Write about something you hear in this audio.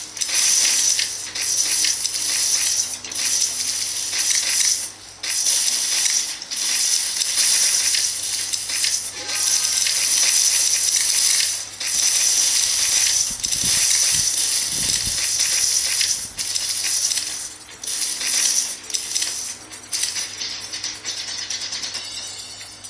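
Electronic game sound effects whoosh and clatter from a small speaker.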